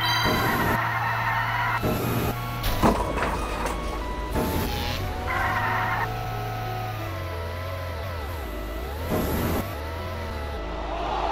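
A toy kart's engine hums steadily.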